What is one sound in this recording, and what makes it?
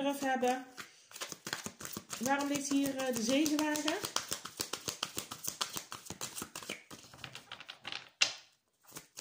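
Playing cards riffle and flap as they are shuffled.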